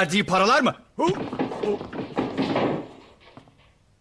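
Men scuffle roughly.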